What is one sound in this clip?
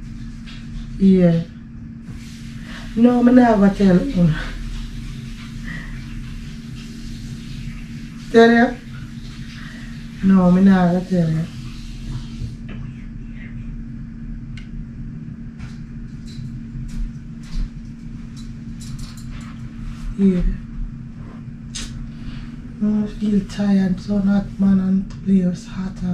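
A woman talks on a phone nearby.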